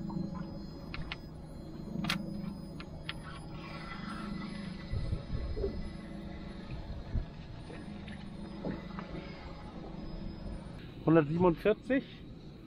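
A fishing reel clicks and whirs as a line is wound in.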